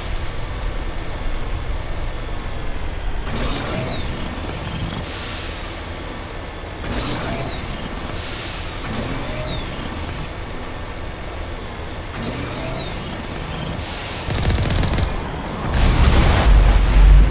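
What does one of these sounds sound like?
A vehicle engine rumbles steadily as it drives.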